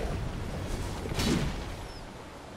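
A loud blast bursts close by.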